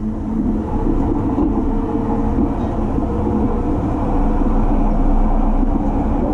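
A passing train rushes by close alongside.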